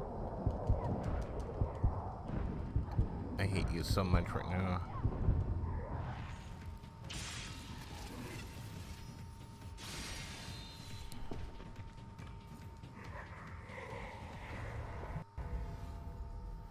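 Sparks crackle and burst from magic attacks.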